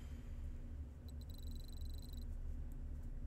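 Rapid electronic ticks chime as a score counts up.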